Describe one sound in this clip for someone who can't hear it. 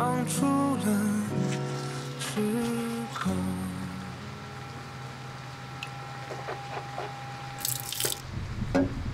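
An electric toothbrush buzzes.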